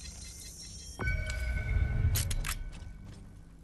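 A game character's body thuds onto the ground as an opponent is taken down.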